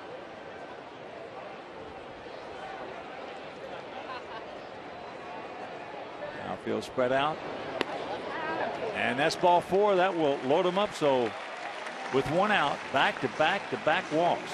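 A crowd murmurs steadily in a large open ballpark.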